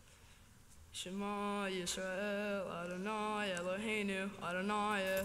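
A man sings a slow chant through a microphone in a large echoing room.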